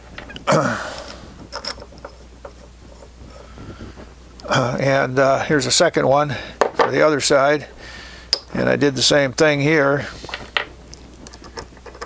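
Small metal parts clink and rattle as a hand handles them on a wooden bench.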